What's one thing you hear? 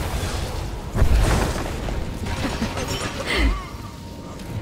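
Energy blasts and weapon strikes crash in a fight.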